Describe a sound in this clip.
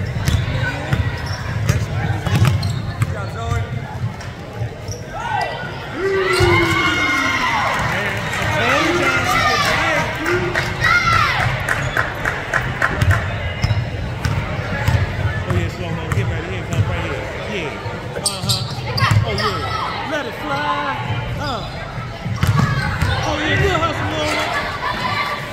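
Spectators cheer and shout from the stands.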